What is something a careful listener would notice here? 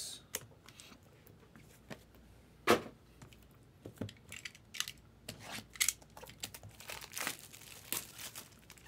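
Plastic wrap crinkles and rustles under fingers.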